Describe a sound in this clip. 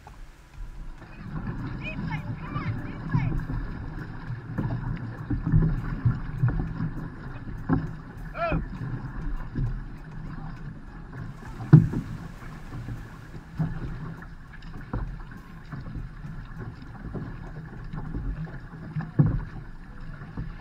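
Paddles splash and pull through the water in a steady rhythm.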